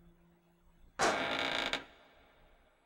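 Heavy metal doors slide open with a loud whoosh.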